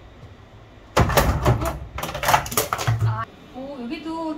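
A small fridge door bumps and rattles loudly.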